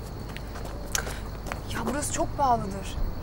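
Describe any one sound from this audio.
A young woman speaks with some urgency, close by.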